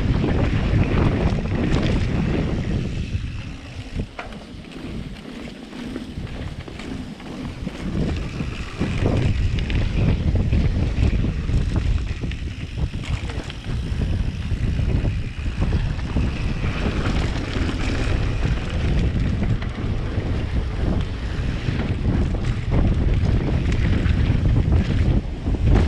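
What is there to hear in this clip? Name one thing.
Bicycle tyres rumble and rattle over a dirt trail.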